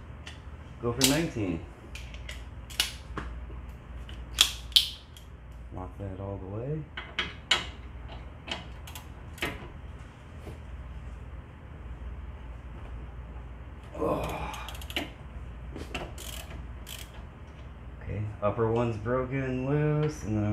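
Metal parts click and clink against a brake rotor.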